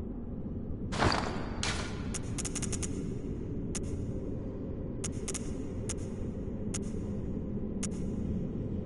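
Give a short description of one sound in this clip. Short clicks tick as menu items are selected.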